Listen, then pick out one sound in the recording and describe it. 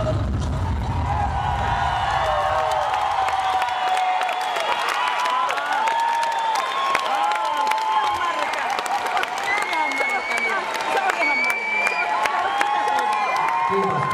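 A crowd of young women screams and shrieks loudly and excitedly.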